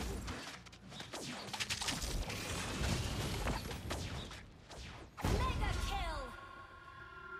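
Game spell effects crash and whoosh during a fight.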